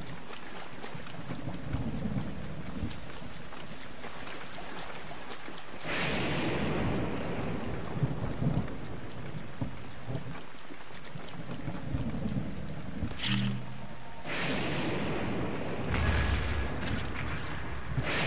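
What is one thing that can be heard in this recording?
Footsteps splash through wet grass.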